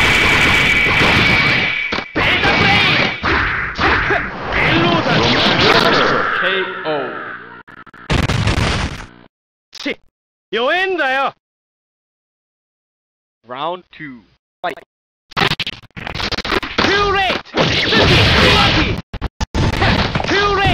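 Blows and energy blasts crash and whoosh in a fast fight.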